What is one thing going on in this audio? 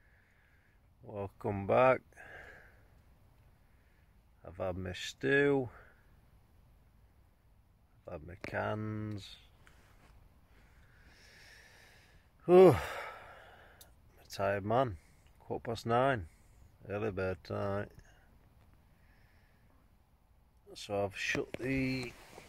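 A young man speaks quietly and close by, in short bursts with pauses.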